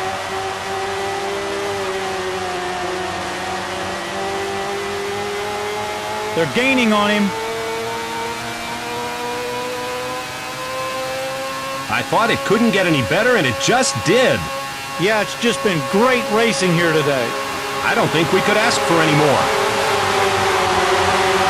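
A racing car engine whines steadily at high speed.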